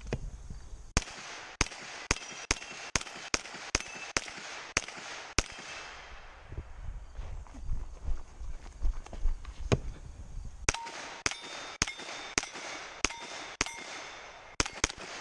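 A rifle fires rapid shots up close, with the shots ringing out across open ground.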